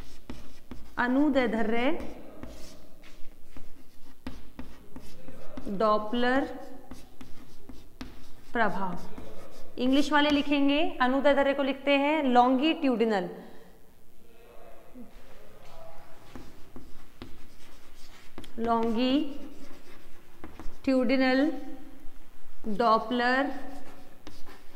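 A young woman speaks calmly nearby, in short phrases with pauses.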